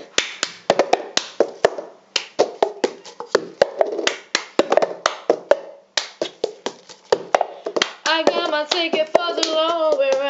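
Hands clap in a quick, steady rhythm.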